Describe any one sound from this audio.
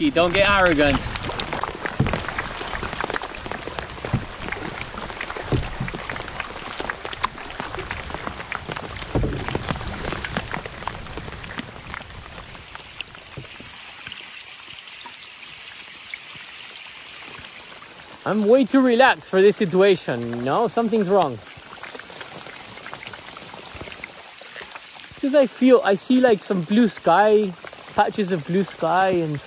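Rain patters on a river's surface.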